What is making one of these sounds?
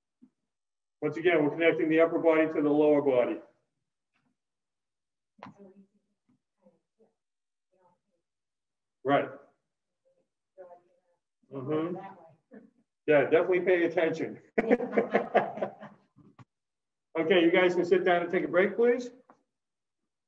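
A man speaks steadily in short bursts, slightly muffled and at a distance.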